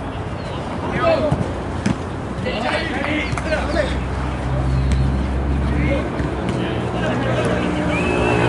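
Young players shout to each other in the distance on an open field.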